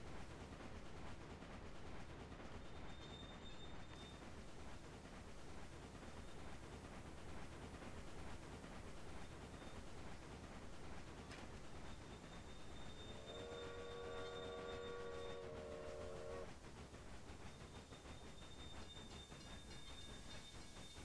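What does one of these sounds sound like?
A steam locomotive rumbles and chugs steadily along the rails.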